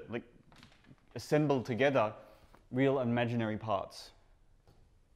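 A man speaks with animation in a large, echoing room.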